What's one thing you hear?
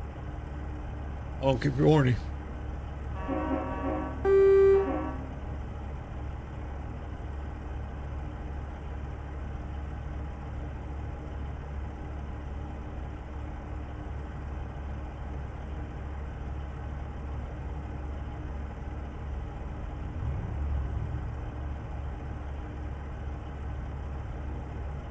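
A truck engine rumbles steadily at a low idle.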